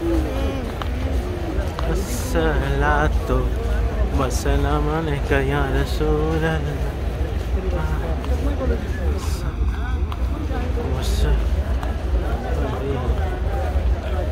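Many footsteps shuffle on stone paving.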